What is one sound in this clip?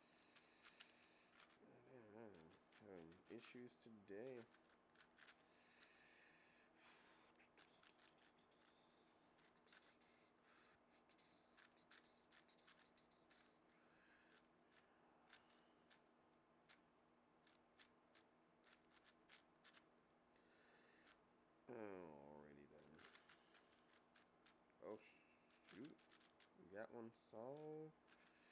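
Plastic puzzle cube pieces click and clack rapidly as they are turned.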